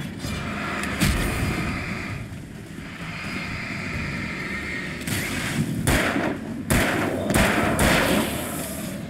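A flare hisses and crackles loudly.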